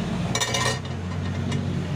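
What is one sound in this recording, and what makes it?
A hand slides across a glass sheet.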